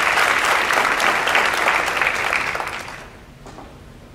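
An audience applauds in a large hall, then the clapping dies away.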